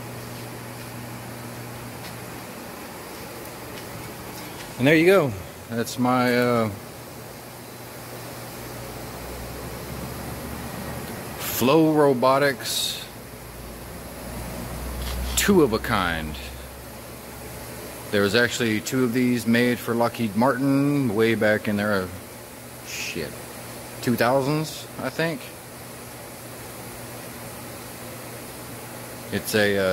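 A waterjet cutter hisses as it cuts through steel plate.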